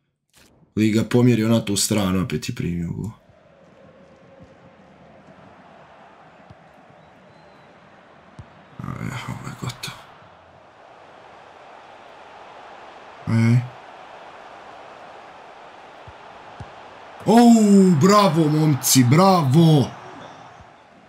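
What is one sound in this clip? A young man speaks with animation close to a microphone, in short bursts.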